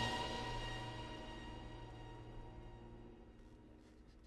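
A band's last notes ring out and fade away.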